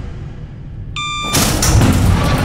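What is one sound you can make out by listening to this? An electronic panel beeps.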